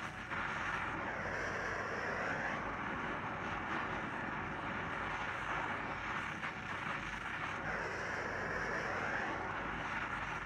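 Molten metal hisses and crackles as powder burns in it.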